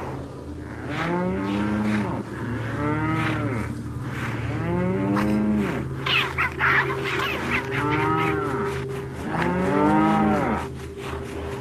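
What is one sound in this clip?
A cow moos loudly, again and again.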